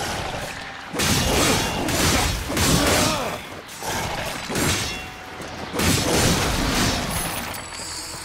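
Blades swing and strike hard in bursts.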